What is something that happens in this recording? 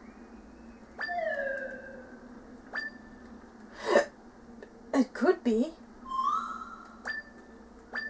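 Soft electronic chimes ring from a video game as its dialogue advances.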